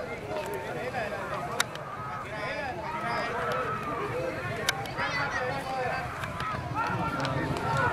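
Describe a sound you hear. A large outdoor crowd of men and women shouts and cheers excitedly.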